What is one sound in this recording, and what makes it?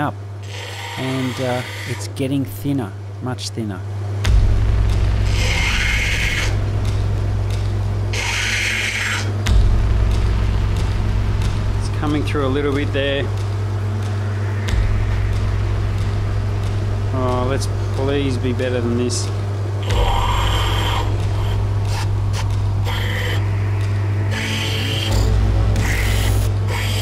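A stone grinds against a spinning wheel with a rasping hiss.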